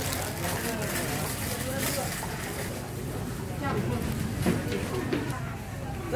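A plastic bag rustles and crinkles as it is handled.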